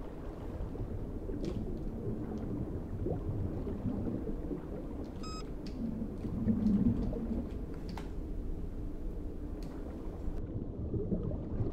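Water swishes with slow swimming strokes.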